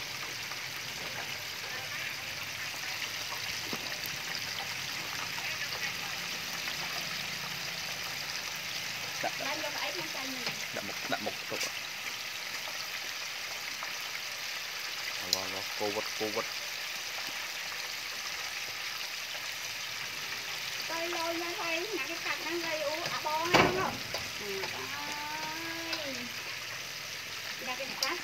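Chicken pieces sizzle and bubble in hot oil in a deep fryer.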